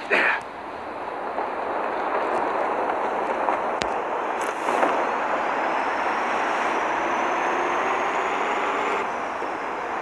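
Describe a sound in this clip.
Wind rushes loudly during a fall through the air.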